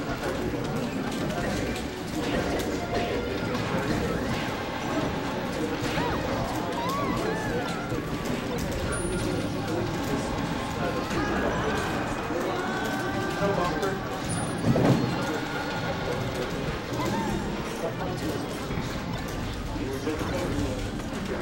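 Fighting game sound effects play, with quick hits, whooshes and chirpy jumps.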